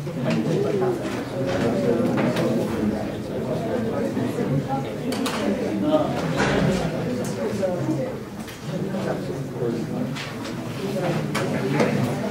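An adult man lectures aloud, his voice echoing in a large room.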